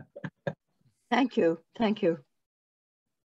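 An elderly woman speaks softly over an online call.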